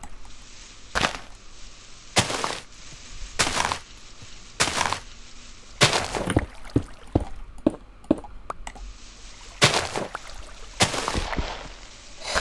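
Blocks break with short crunching knocks in a game.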